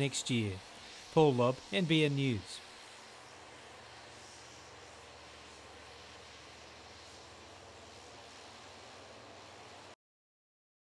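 A propeller plane's engines hum steadily as it taxis by.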